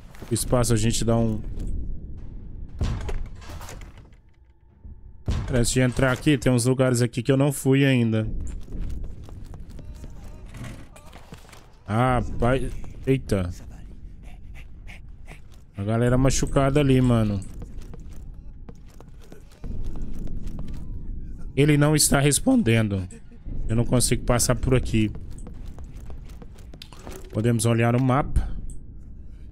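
A man talks with animation into a close microphone, in bursts with pauses.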